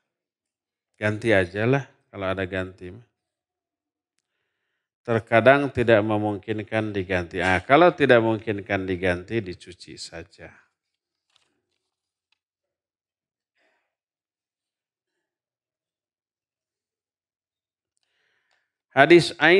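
A middle-aged man speaks calmly into a microphone, in pauses.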